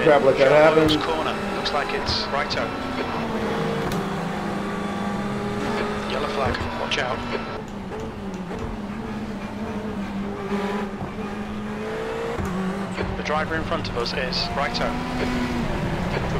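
A racing car engine drones steadily, rising and falling with the gears.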